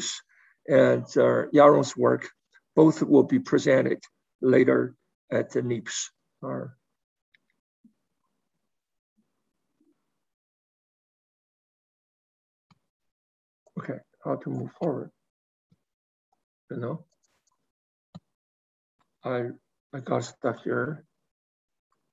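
A man speaks calmly over an online call, with pauses.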